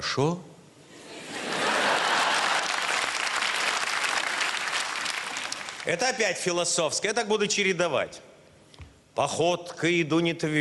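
An elderly man speaks into a microphone on a stage, reading out with expression.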